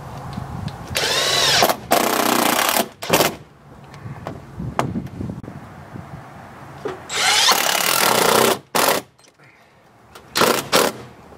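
A cordless drill whirs in loud bursts, drilling into thin metal.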